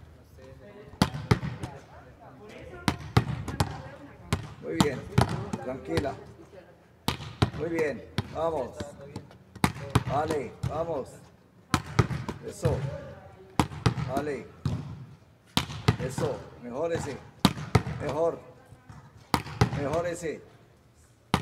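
A volleyball is struck by hand and thuds against a wall again and again.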